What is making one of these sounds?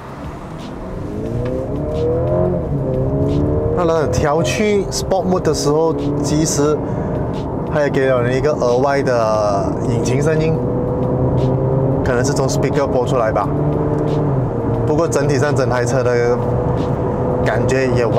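A car engine revs up and accelerates hard, its pitch rising through the gears.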